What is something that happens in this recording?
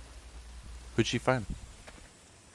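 A young man speaks briefly.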